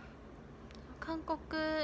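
A young woman speaks briefly in a high voice, close to the microphone.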